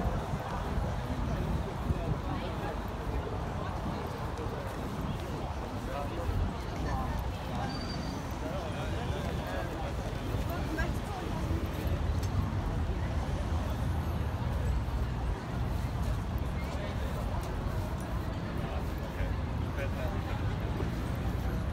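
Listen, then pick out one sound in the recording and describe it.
A crowd of people chatter outdoors on a busy street.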